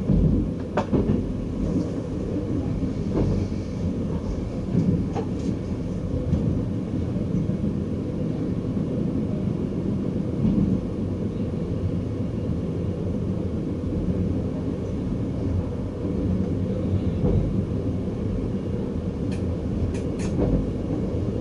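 Train wheels clack over rail joints now and then.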